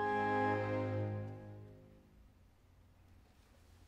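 Violins play a sustained chord that rings out and fades in a large echoing hall.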